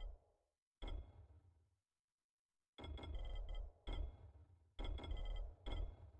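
Short game menu clicks and chimes sound again and again.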